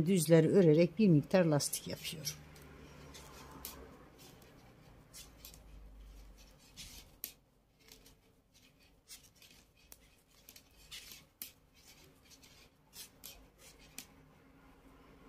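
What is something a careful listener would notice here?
Metal knitting needles click and tap softly.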